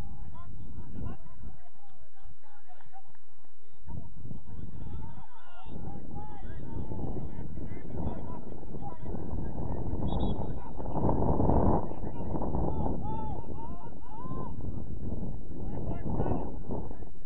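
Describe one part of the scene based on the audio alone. Young men shout to each other in the distance across an open field.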